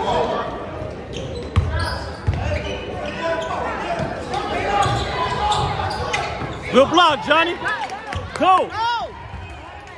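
Spectators murmur and call out in the gym.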